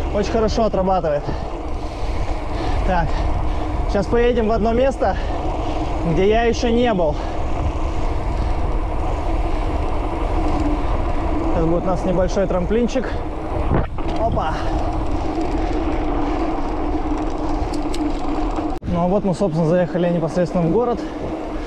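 Wind buffets a microphone while riding outdoors.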